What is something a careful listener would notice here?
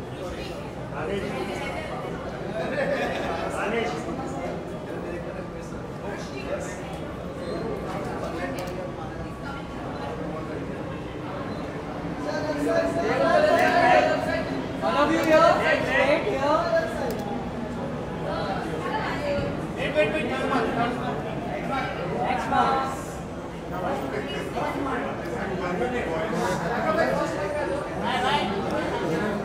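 A crowd of men and women chatter nearby.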